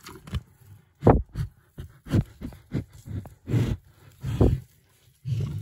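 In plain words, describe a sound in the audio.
A calf's muzzle knocks against a plastic bucket.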